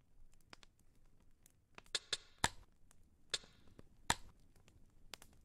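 Short, sharp clicks sound several times as menu choices are made.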